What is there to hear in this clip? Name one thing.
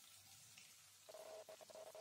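Sliced onions tumble into a frying pan.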